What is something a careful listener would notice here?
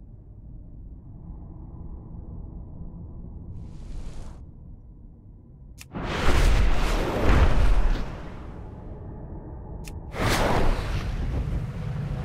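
Wind rushes past in low, rumbling gusts that swell loudly twice.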